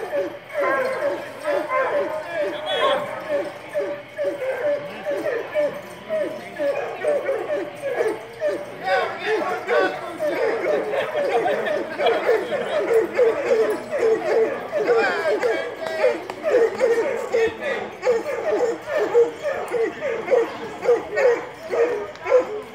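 Ducks quack rapidly and repeatedly on a pond.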